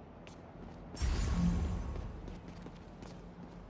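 An energy beam fires with a loud rushing zap.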